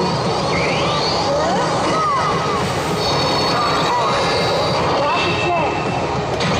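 A loud, steady din of many gaming machines goes on throughout.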